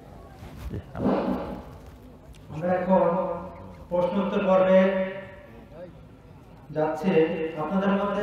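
A man chants in a drawn-out, melodic voice through a microphone and loudspeakers, in bursts with pauses.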